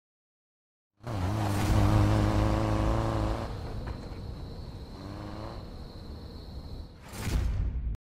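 A car engine roars as a car speeds away.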